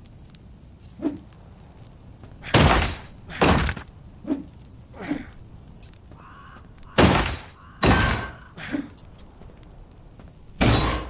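Heavy blows and thuds strike in a fight, loud and sudden.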